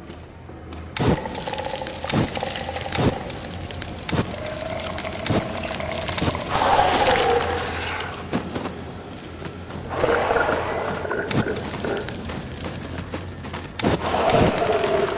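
A grenade launcher fires with sharp booms.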